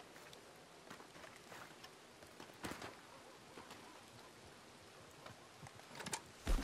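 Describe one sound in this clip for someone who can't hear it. Footsteps tread on soft ground.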